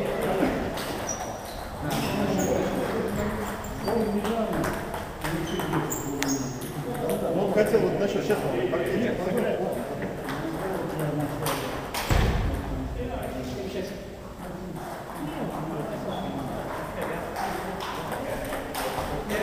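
Several men talk and call out in the hall.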